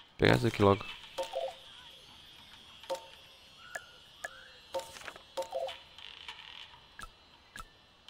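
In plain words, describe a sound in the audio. Soft game menu clicks sound as options are chosen.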